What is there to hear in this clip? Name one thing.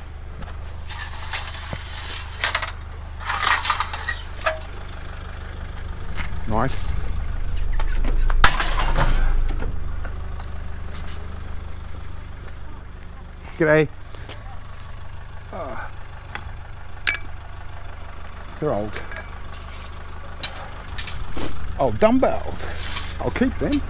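Metal poles clatter and scrape as they are handled.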